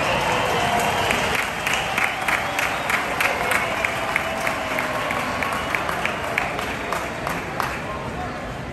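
A stadium crowd claps in a steady rhythm.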